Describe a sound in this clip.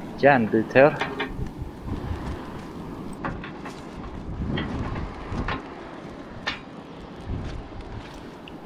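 Metal tongs clink and scrape against burning coals.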